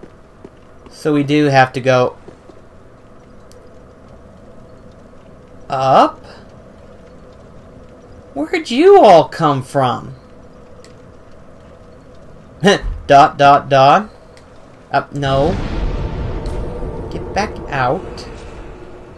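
An adult man speaks in short bursts, close to a microphone.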